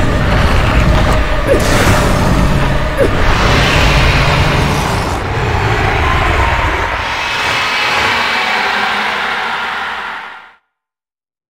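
A huge monster roars deeply and loudly, then the roar cuts off.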